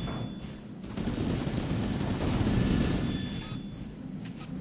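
A loud explosion booms close by.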